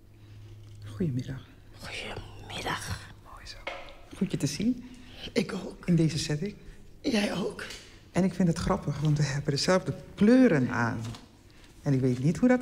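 An older woman talks with animation close by.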